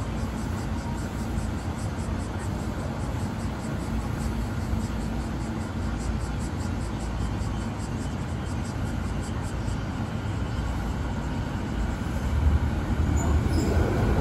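An electric train hums as it pulls slowly into a platform.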